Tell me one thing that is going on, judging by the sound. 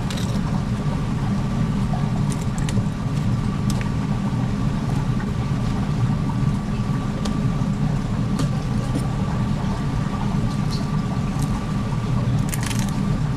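A knife slices through raw fish.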